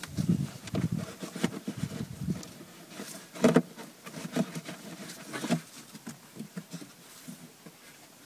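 Plastic parts scrape and click under hands.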